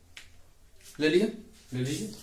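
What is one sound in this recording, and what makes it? A young man speaks clearly and close by.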